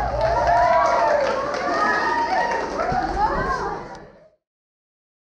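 A crowd of young men and women sings and cheers loudly.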